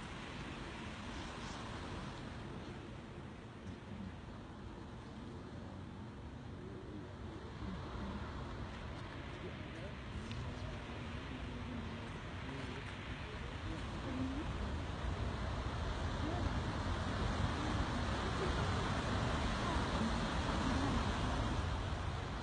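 A huge flock of birds whooshes overhead with a rushing of wings.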